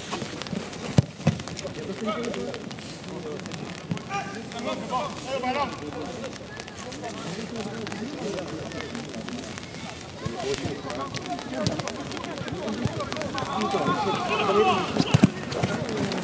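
A football is kicked hard with a dull thud.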